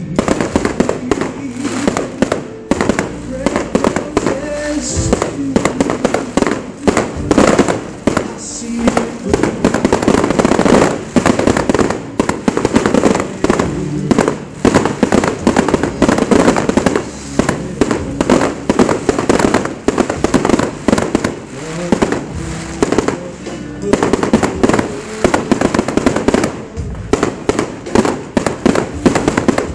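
Fireworks bang and crackle in rapid bursts outdoors.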